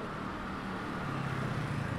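A motor scooter engine hums nearby.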